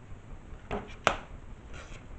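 A circuit board clicks as hands turn it over.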